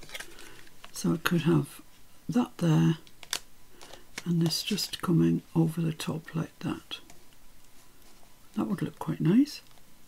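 Paper rustles and crinkles as hands press it down.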